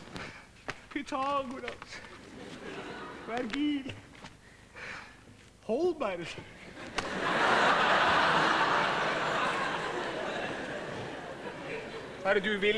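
A man speaks loudly and theatrically on a stage in a large hall.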